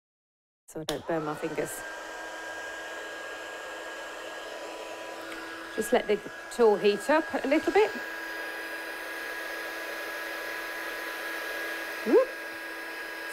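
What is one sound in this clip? A heat tool whirs with a steady hum.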